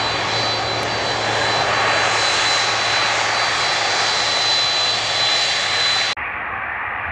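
A jet airliner's engines roar and whine loudly close by as it taxis.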